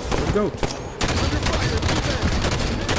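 Rapid gunfire rattles and bangs.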